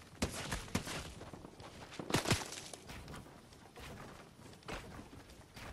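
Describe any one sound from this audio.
Footsteps thud quickly on grass as a character runs.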